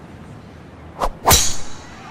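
A golf club swishes through the air.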